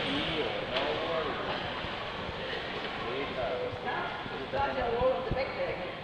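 A woman talks calmly in an echoing hall.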